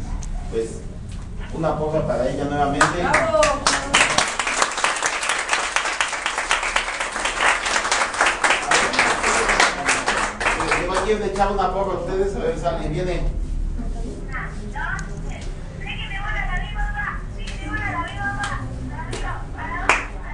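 A group of men and women sing together in an echoing room.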